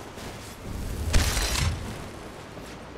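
A magic spell crackles and bursts with a loud whoosh.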